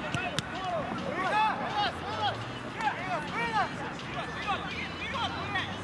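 Young men shout faintly to each other across an open outdoor field.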